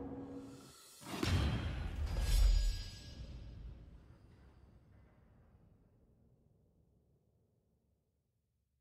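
A booming victory fanfare swells and slowly fades away.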